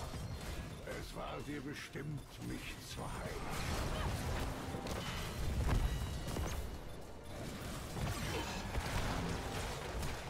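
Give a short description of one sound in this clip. Game spell effects and attacks crackle and boom in a busy battle.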